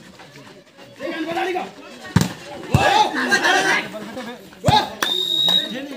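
Young men shout and call out with animation nearby.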